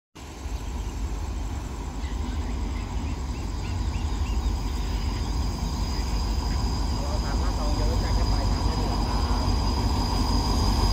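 A diesel train engine rumbles as it approaches, growing louder.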